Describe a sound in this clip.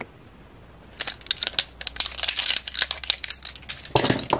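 Paintbrushes clatter against each other.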